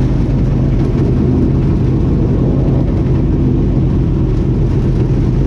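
Wind buffets hard against the car at speed.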